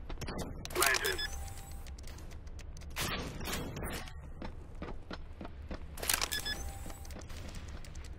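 Keypad buttons beep as a code is typed in.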